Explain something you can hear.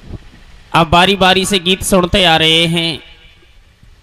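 A man sings loudly into a microphone through a loudspeaker, in a long drawn-out phrase.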